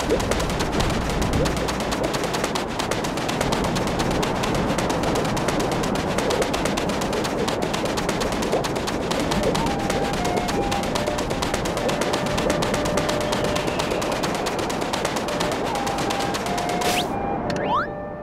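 Footsteps crunch quickly through soft sand.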